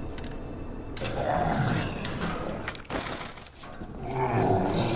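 A metal locker door creaks open.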